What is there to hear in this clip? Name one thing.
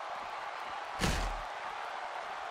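A body slams down with a heavy thud.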